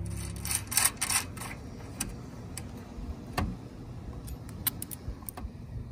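Plastic cable connectors click as they are pushed together.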